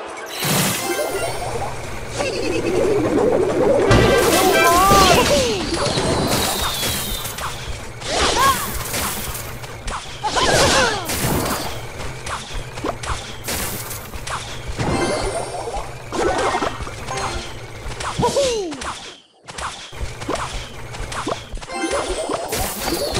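Short game sound effects crash and zing in quick bursts.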